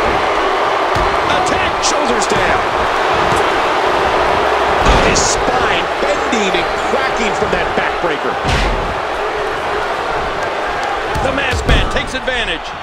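Bodies thud heavily onto a wrestling mat.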